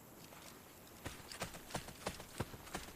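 Quick footsteps thud on grass at a run.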